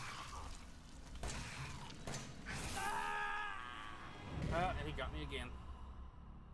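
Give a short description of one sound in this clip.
A young man shouts and groans into a close microphone.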